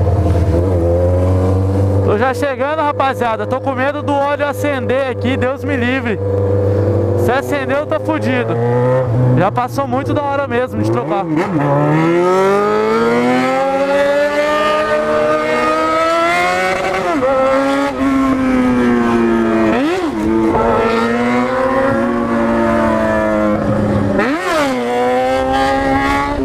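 A motorcycle engine roars close by, revving up and down as it accelerates and shifts gears.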